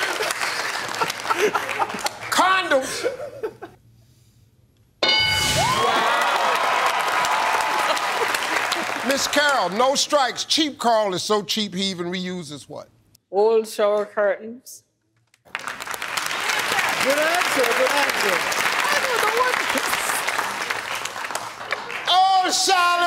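A studio audience cheers and applauds loudly.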